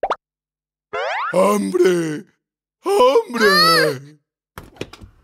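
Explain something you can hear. A cartoon character speaks in a playful deeper voice.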